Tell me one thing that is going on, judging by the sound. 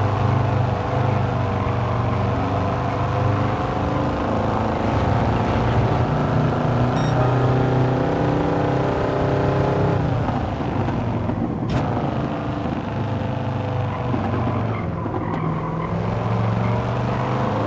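A racing car engine roars loudly, revving through the gears.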